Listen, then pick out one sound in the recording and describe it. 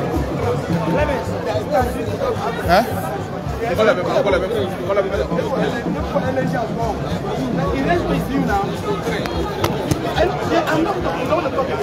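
A large outdoor crowd of men talks and shouts all around, close by.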